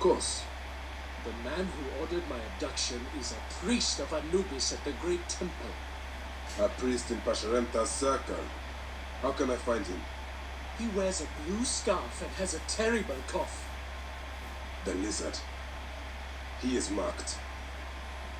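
A young man speaks calmly close to a microphone.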